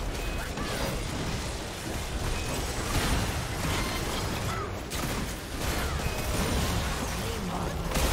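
Game spell effects crackle and blast during a fight.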